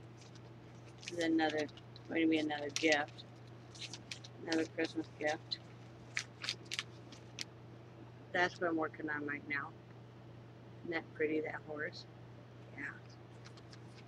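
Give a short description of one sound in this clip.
Paper rustles in hands.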